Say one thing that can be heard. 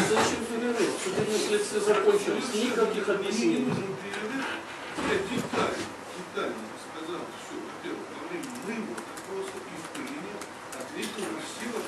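A man speaks with animation in an echoing room.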